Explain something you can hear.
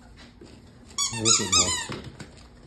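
A puppy yelps and whines in quick high-pitched bursts.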